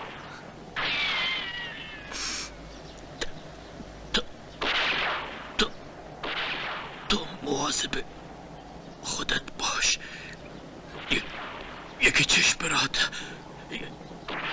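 A man speaks softly and with emotion, close by.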